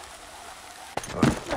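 A heavy thump lands.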